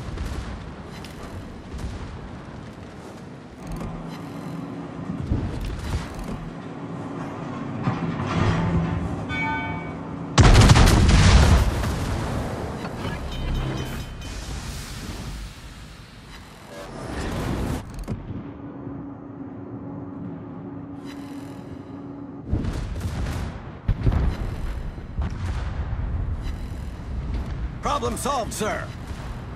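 Heavy guns fire with loud, deep booms.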